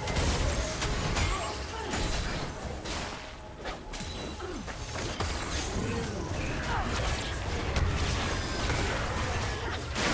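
Spell effects whoosh, crackle and thump in a game battle.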